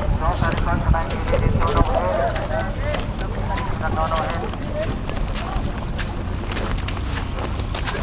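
A child splashes through shallow water.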